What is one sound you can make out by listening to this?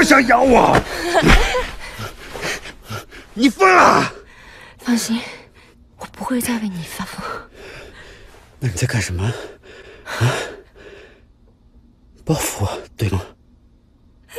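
A man asks questions in a low, tense voice.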